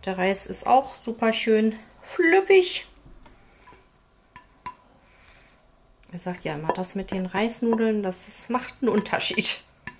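A spoon scrapes and scoops rice from a metal pan.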